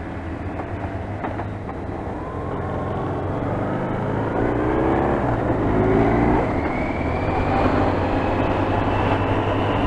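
A motorcycle engine hums steadily up close and rises in pitch as it speeds up.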